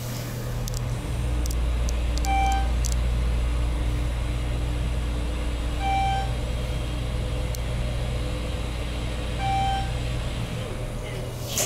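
An elevator hums low and steady as it descends.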